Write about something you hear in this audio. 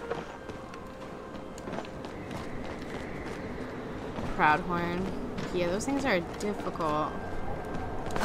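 Light footsteps patter on stone as a figure runs.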